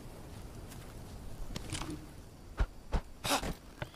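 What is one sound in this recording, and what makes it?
A stick is picked up from the ground with a short snap.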